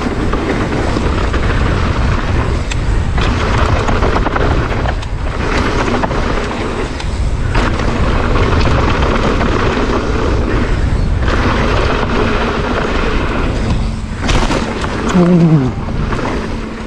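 Wind rushes past a fast mountain bike rider.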